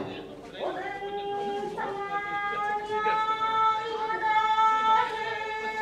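A flute plays long, held notes.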